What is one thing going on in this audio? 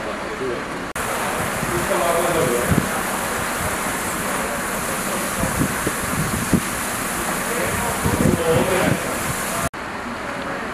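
A fire hose sprays water hissing onto a car.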